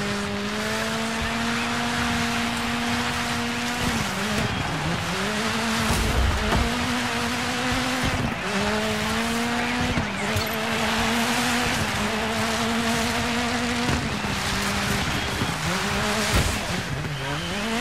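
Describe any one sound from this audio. A race car engine roars loudly, revving up and dropping with each gear change.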